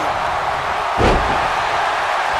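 A heavy body slams down onto a wrestling mat with a thud.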